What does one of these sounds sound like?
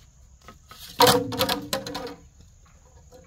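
Bamboo poles clatter loudly as they drop onto the ground.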